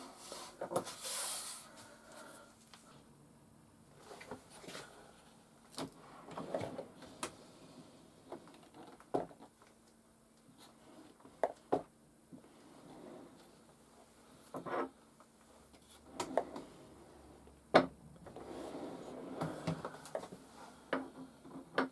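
A small metal tin clinks as it is set down.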